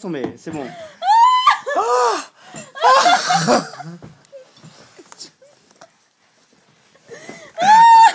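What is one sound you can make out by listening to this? A young person laughs and squeals loudly up close.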